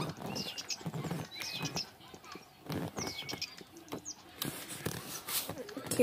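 A small cartoon creature chirps a short, bouncy tune.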